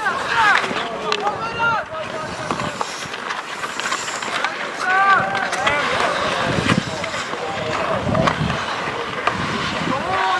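Skates scrape on the ice.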